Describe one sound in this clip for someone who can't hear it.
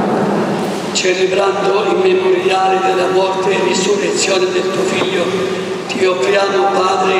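An elderly man chants slowly through a microphone in a large echoing hall.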